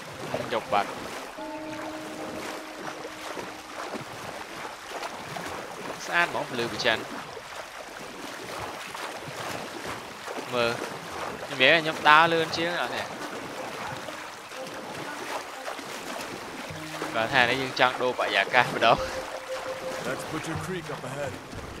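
A paddle splashes and dips in water.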